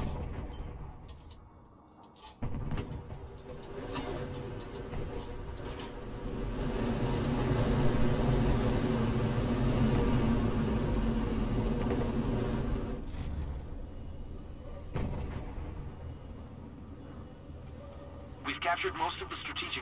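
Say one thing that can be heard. A tank engine rumbles and roars.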